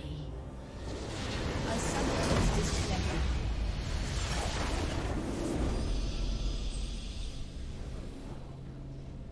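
A huge crystal explodes with a loud, rumbling roar.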